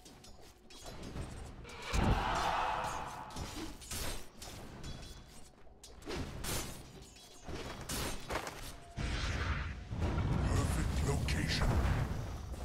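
Game units clash with sharp hits and clangs.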